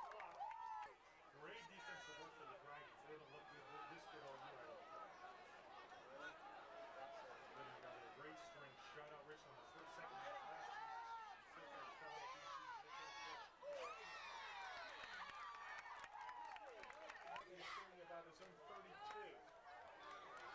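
Young men nearby shout and yell.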